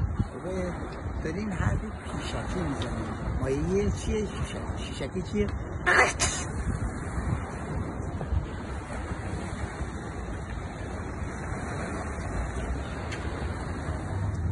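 Wind blows across the microphone outdoors.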